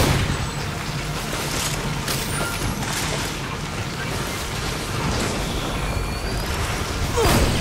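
A heavy machine rumbles low and steady.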